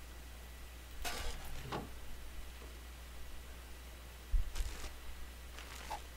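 A metal box opens with a clunk.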